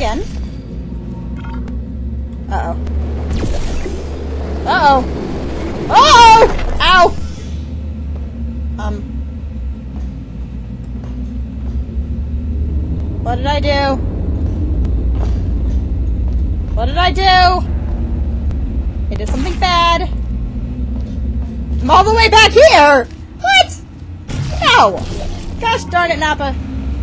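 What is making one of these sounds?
A young woman talks and laughs into a microphone with animation.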